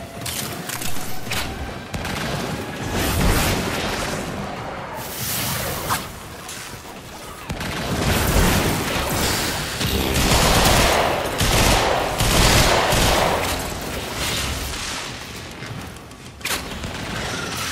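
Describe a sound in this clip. Heavy gunfire and explosions boom and crackle throughout.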